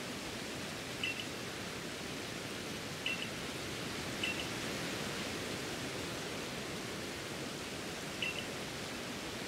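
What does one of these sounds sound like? Short high electronic blips sound now and then.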